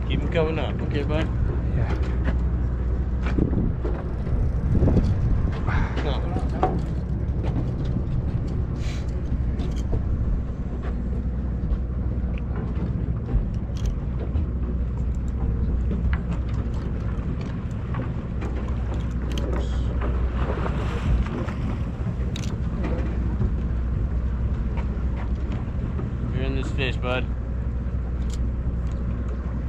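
Water laps and splashes against a boat's hull.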